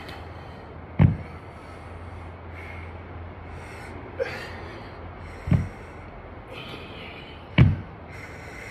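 Heavy dumbbells thud down onto hard ground.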